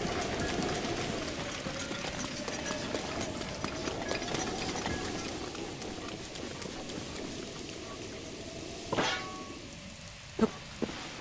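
Rain falls steadily all around.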